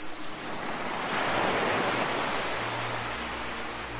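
Water ripples and laps gently.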